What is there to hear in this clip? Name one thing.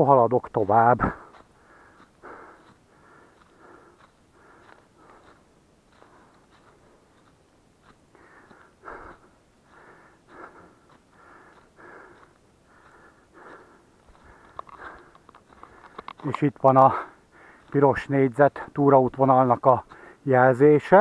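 Footsteps crunch on dry leaves along a path.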